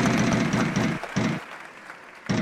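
A prize wheel clicks rapidly as it spins and slows.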